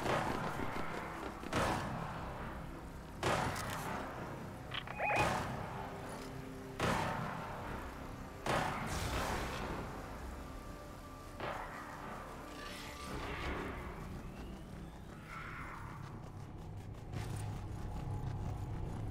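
Footsteps patter quickly over pavement and grass.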